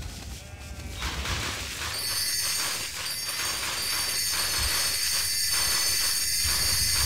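Bright electronic chimes ring rapidly in a quick, sparkling stream.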